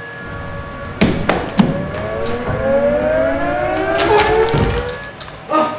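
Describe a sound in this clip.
Footsteps thud and scuff across a hard stage floor.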